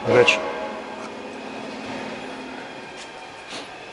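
A lathe spins with a steady whirring hum.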